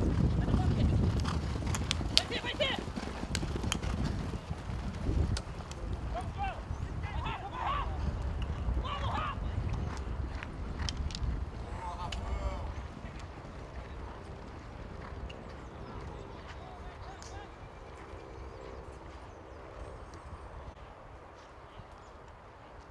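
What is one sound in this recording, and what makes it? Horses gallop across grass with thudding hooves.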